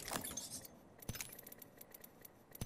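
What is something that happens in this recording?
Short electronic menu clicks sound.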